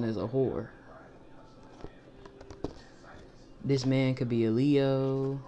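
Playing cards rustle and flick softly in someone's hands.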